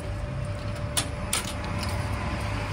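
A finger presses a button on a vending machine with a click.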